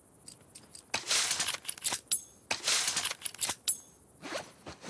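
Cloth and small objects rustle and clink as items are crafted by hand.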